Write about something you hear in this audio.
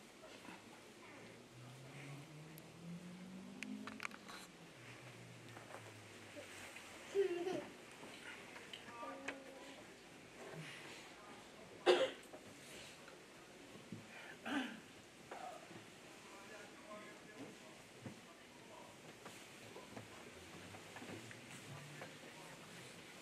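Several women murmur quietly nearby.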